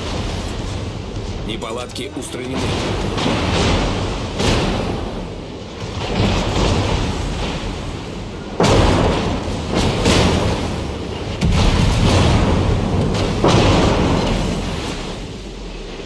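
Shells explode with deep rumbling blasts.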